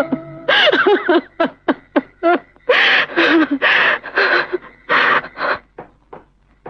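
A young woman sobs and wails close by.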